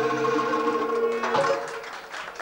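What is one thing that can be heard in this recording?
Musicians play a lively tune.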